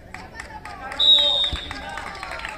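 A referee blows a sharp whistle on an open pitch.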